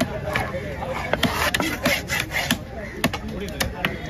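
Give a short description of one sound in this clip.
A knife scrapes across a wooden block.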